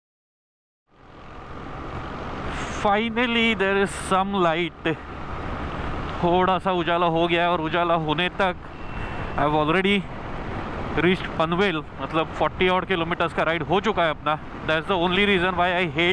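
A motorcycle engine rumbles steadily while riding on a road.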